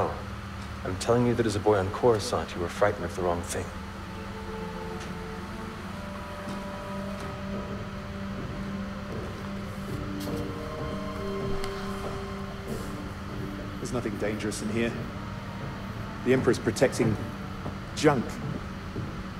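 A young man answers in a calm voice.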